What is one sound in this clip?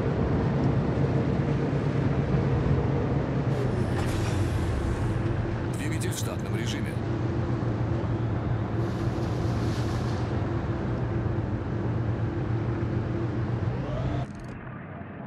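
Water rushes and splashes along a ship's hull.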